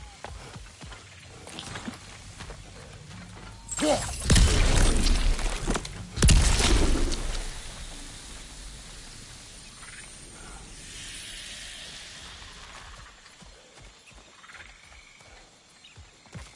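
Heavy footsteps tread over soft ground.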